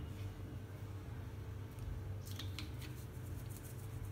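A small glass dish clinks as it is set down on a table.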